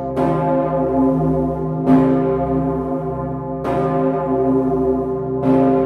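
A large bell swings and rings loudly, with strikes that ring on and echo.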